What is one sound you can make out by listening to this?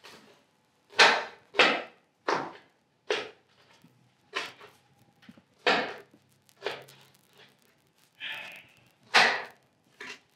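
A knife chops on a cutting board in sharp taps.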